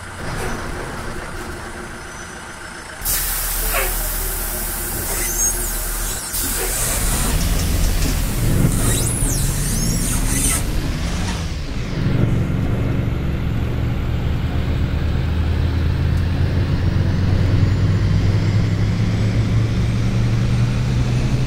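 A bus engine hums and rises as the bus pulls away.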